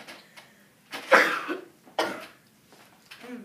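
A young boy sneezes loudly.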